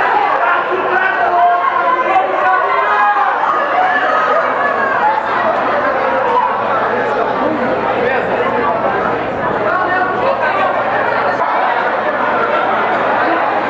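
A crowd chatters and shouts loudly all around.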